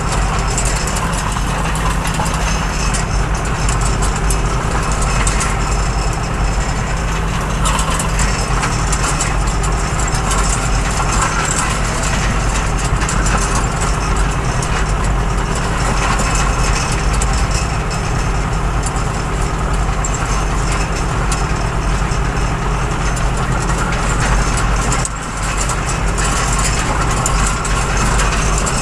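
A mower clatters through tall grass.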